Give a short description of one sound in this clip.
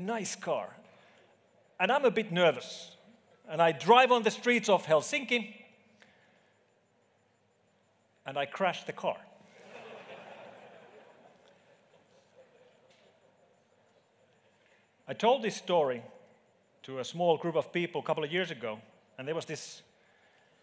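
A man speaks into a microphone in a large hall, with pauses between his phrases.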